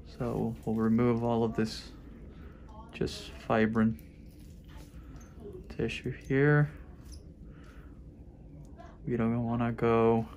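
Metal nippers snip at tough skin with small clicks.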